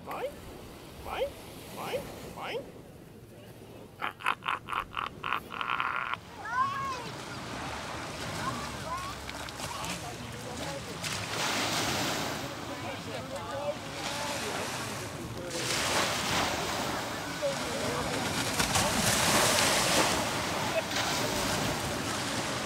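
Gentle waves wash onto the shore.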